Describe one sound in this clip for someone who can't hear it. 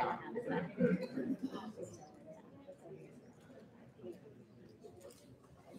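An audience murmurs and chatters softly in a large echoing hall.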